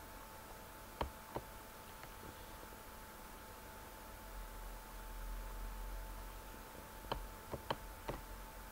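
A short wooden click sounds as a chess piece is placed.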